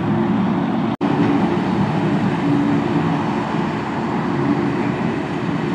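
A diesel wheel loader drives along with its engine rumbling.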